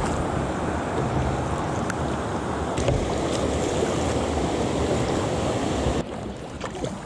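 Water rushes loudly over a weir.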